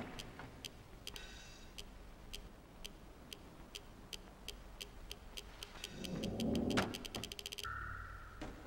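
Light footsteps patter steadily on a hard floor.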